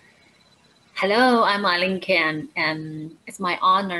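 A young woman speaks with animation through an online call.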